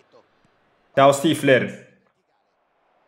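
A young man shouts out loudly into a microphone.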